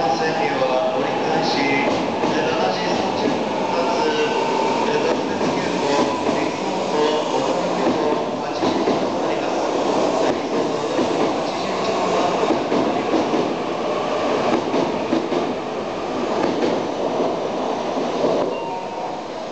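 A high-speed train rushes past close by with a loud, steady roar, then fades away.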